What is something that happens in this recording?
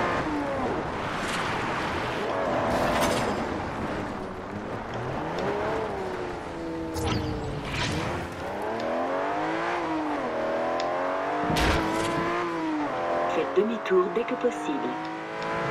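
A car engine roars and revs up and down as it accelerates through the gears.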